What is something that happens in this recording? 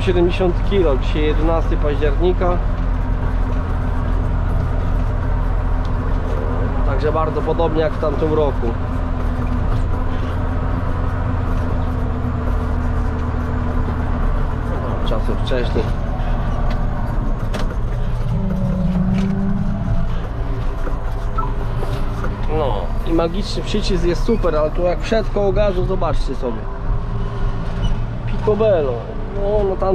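A tractor engine drones steadily and loudly.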